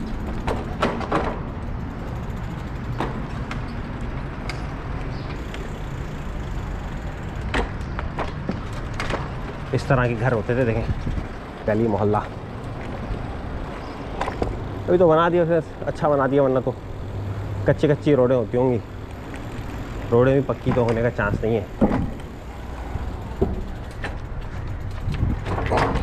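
Small wheels rumble over paving stones.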